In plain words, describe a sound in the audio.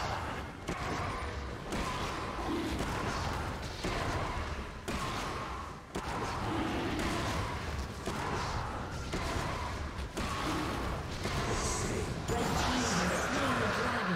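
Spell effects and blows crackle and clash in a fight.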